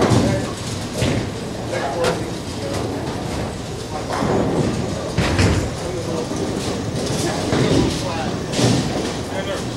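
Bowling pins clatter and crash.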